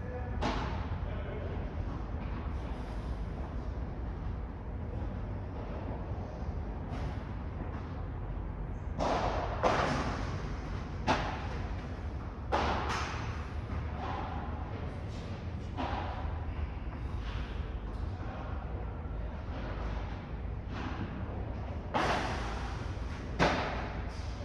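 Padel rackets strike a ball with sharp pops in an echoing hall.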